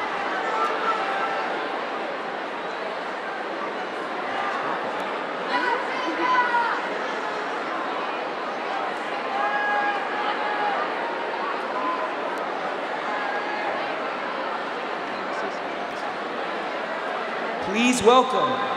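A large crowd murmurs and chatters in a big echoing hall.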